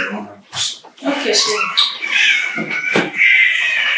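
A young woman gets up quickly from a leather sofa.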